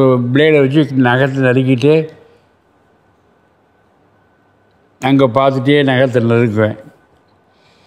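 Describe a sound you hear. An elderly man speaks calmly and close to a microphone, in short bursts with pauses.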